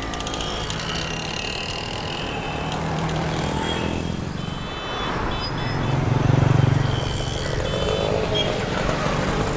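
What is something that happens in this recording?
Vehicle horns honk repeatedly.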